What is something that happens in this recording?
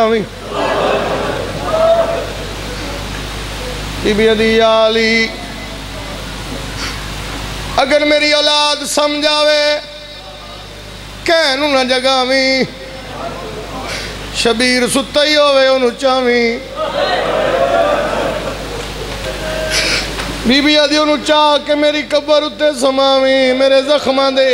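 A young man chants loudly into a microphone, heard through loudspeakers in a reverberant space.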